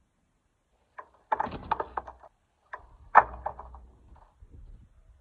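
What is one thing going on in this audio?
A skateboard clatters and slaps onto concrete.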